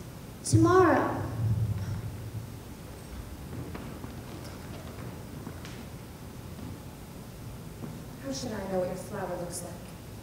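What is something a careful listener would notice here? A woman on stage cries out in a high, wavering voice in a large hall.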